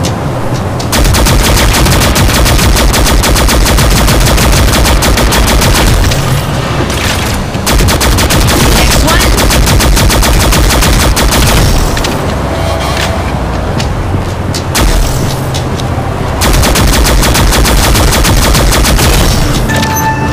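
A rapid-fire gun shoots in fast, steady bursts.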